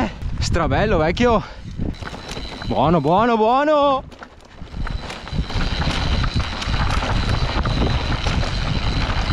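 Bike tyres rumble and crunch over a dirt trail.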